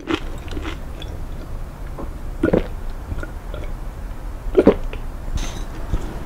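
A person sips a drink.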